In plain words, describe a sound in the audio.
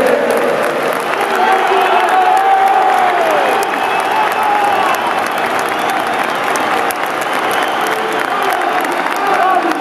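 A man claps his hands close by.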